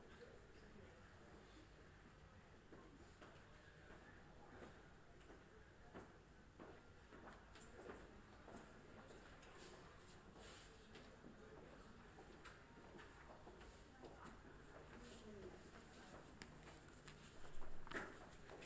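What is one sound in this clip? Footsteps shuffle on a hard floor.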